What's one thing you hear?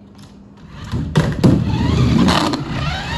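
A plastic bottle knocks over and clatters on a wooden floor.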